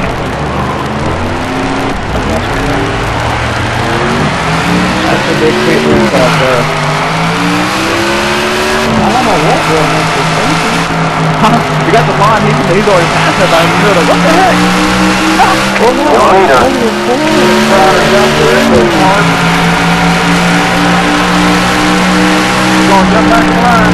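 A race car engine roars steadily, its pitch rising and falling as it shifts gears.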